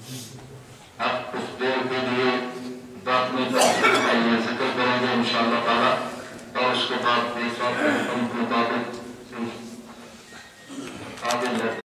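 An elderly man speaks forcefully through a microphone and loudspeakers, echoing in a large room.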